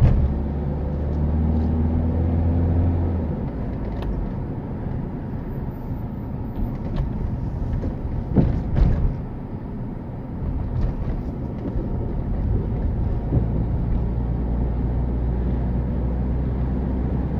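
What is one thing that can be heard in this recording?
A car engine hums steadily from inside the car.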